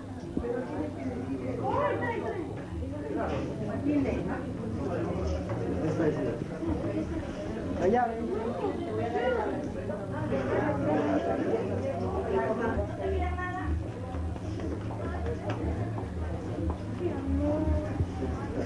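A crowd of men and women talks in a room with a low murmur.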